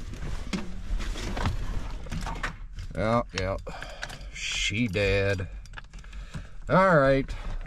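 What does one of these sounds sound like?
Plastic parts in a car interior knock and click as a hand handles them.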